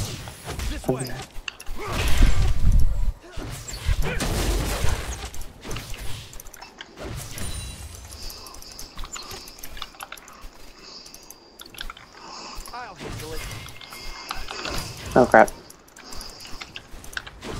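Game attacks clash and thud.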